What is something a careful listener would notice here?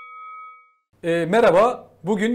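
A man speaks calmly and clearly into a close microphone.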